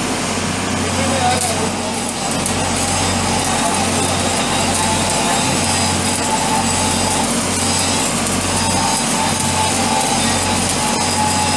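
An electric welding arc crackles and sizzles steadily.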